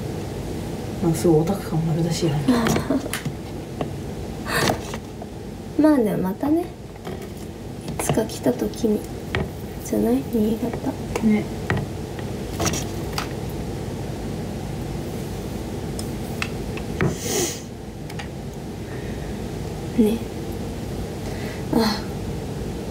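A young woman talks casually and close by, with pauses.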